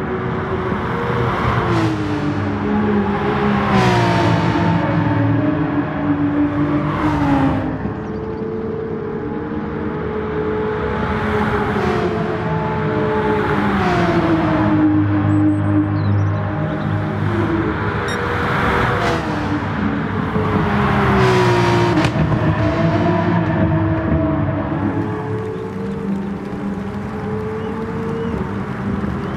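A racing car engine roars loudly, revving up and dropping in pitch as gears change.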